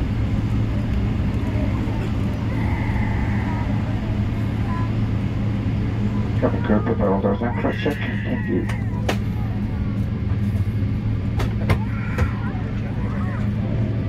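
An aircraft engine hums steadily from inside the cabin.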